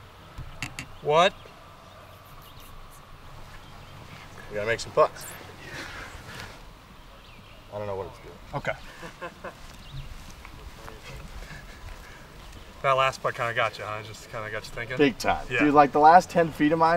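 A man talks with animation outdoors.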